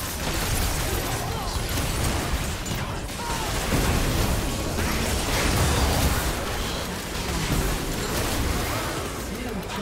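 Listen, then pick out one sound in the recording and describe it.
Spell blasts, hits and explosions crackle and boom in rapid bursts.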